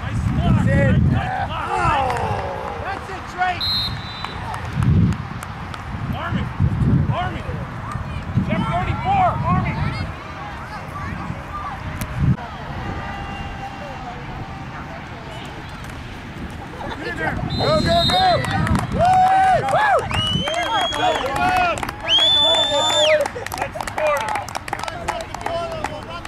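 Young boys shout and call out to each other outdoors.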